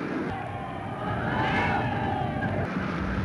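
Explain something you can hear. Men cheer and shout.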